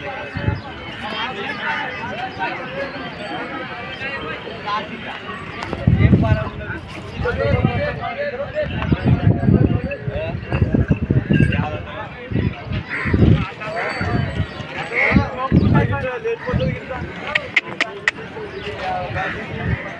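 A crowd of men chatters outdoors in the background.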